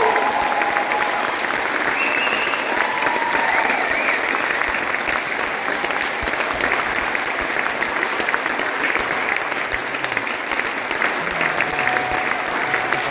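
A drummer keeps time with the cymbals.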